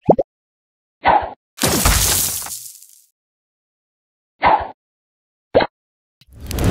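Short game pops sound as balls are fired.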